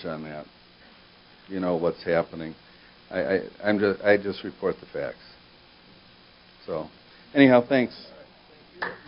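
A middle-aged man speaks calmly through a microphone in a large room.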